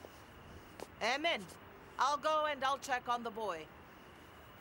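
A young woman speaks quietly and tensely nearby.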